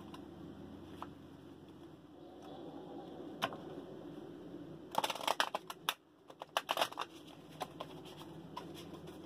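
Cards are shuffled with soft riffling and flicks.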